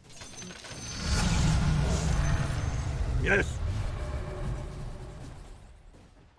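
A deep rumbling blast of game magic rolls out and fades.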